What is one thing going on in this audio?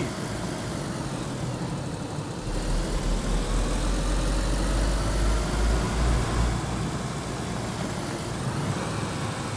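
Tyres crunch and rumble over a gravel road.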